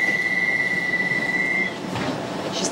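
A door warning tone beeps steadily.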